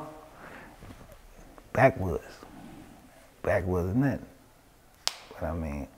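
A man speaks close to a microphone in short, animated bursts.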